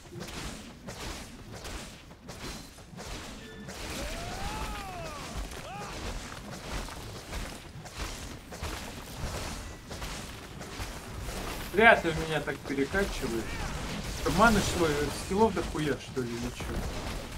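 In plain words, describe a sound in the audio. Fantasy battle sounds of spells and blows clash throughout.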